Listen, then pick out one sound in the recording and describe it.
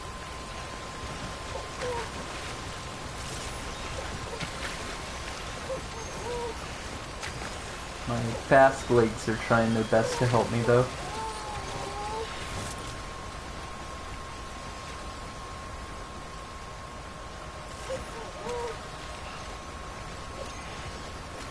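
Water splashes and sloshes steadily.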